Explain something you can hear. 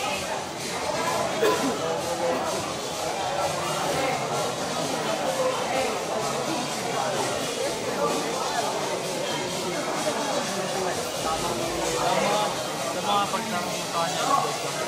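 Several men chatter nearby.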